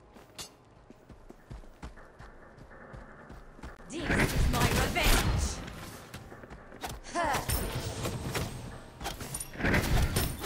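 Game characters fight with clashing blows and bursts of magic.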